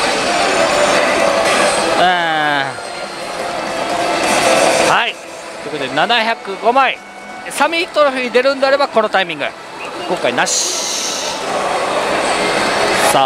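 A slot machine plays loud electronic music and effects.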